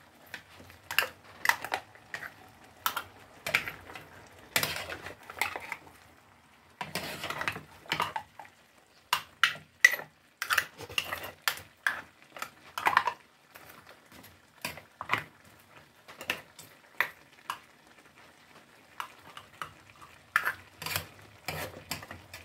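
A metal spoon clinks and scrapes against shells in a frying pan.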